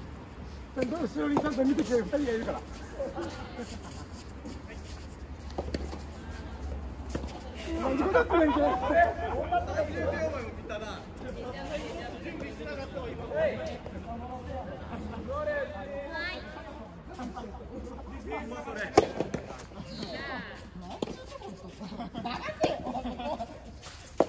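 Young men call out and talk nearby.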